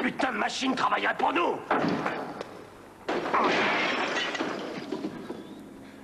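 A pinball machine rings and clatters.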